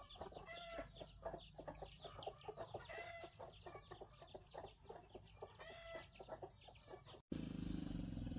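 Chickens cluck and call nearby.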